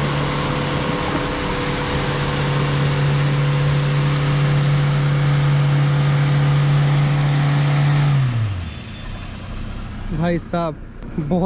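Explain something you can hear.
Tyres churn through wet sand and mud.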